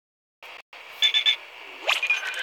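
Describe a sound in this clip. A short electronic chime sounds as an item is picked up.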